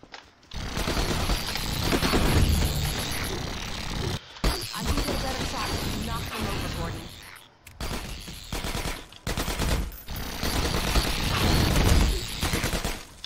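Heavy blasts and explosions boom loudly.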